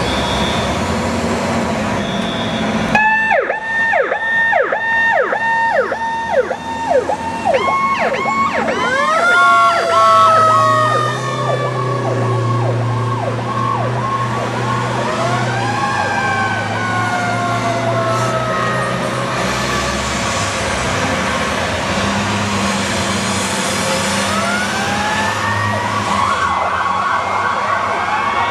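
Fire truck sirens wail and yelp loudly, rising and falling.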